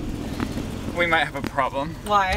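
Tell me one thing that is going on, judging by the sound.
A young man speaks close by with animation.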